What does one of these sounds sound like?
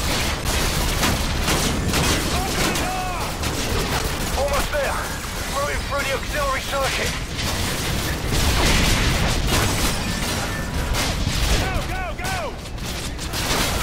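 Rapid gunfire rattles and cracks close by.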